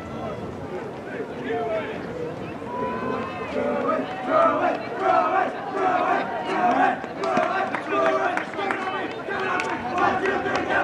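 Spectators cheer and shout encouragement outdoors.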